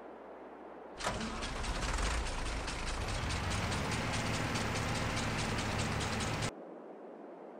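A mower clatters loudly through grass.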